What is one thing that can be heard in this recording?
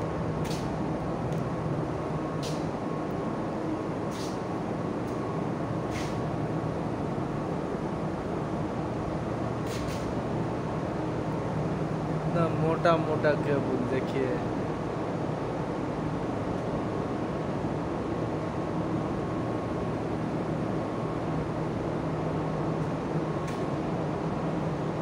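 A steady electrical hum drones throughout.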